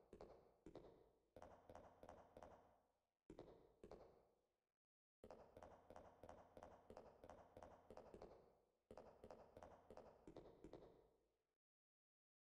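Footsteps echo steadily along a hard corridor.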